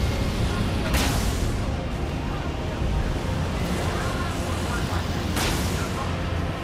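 Heavy impacts crash loudly twice.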